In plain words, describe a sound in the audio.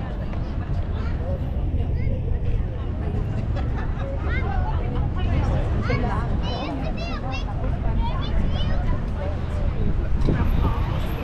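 A crowd of men and women chatter at a distance.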